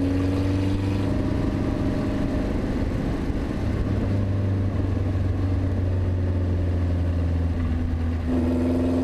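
Wind rushes past in an open cockpit.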